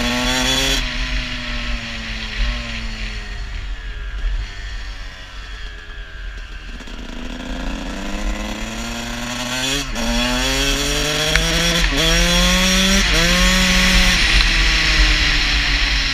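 A dirt bike engine winds down as the rider slows, then revs up through the gears as it speeds away.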